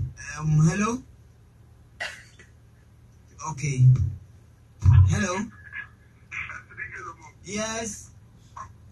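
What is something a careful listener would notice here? A man speaks calmly in short phrases close to a microphone.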